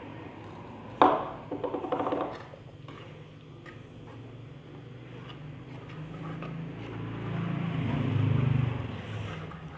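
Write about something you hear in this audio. A metal spoon stirs and scrapes in a pot of thick liquid.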